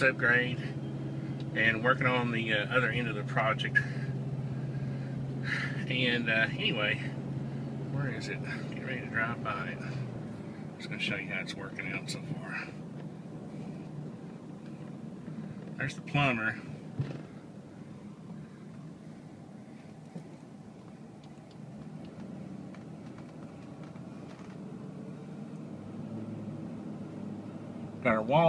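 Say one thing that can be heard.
A car engine hums low and steadily while driving slowly.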